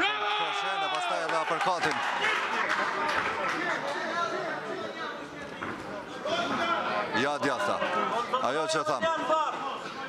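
A crowd shouts and cheers loudly in a large room.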